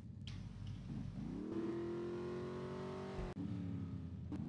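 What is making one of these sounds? A car engine starts and runs with a steady hum.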